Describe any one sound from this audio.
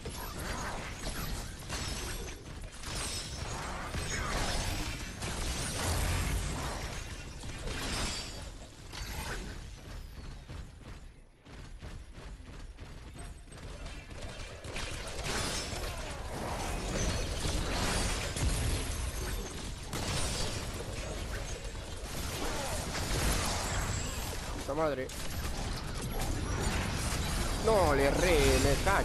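Game weapons fire and blast in rapid bursts.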